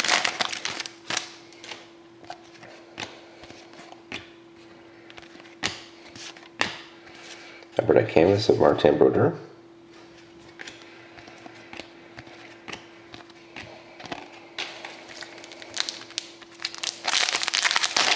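Trading cards slide and tap against each other as they are flipped through.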